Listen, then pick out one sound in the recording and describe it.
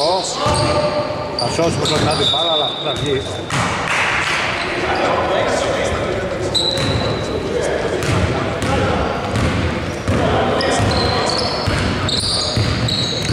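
Sneakers squeak sharply on a wooden court in an echoing hall.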